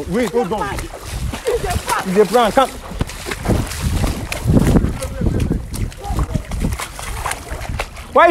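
Men shout excitedly nearby, outdoors.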